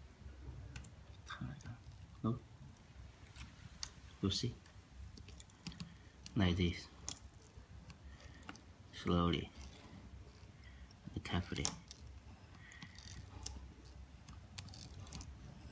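Metal parts click and clatter as they are handled.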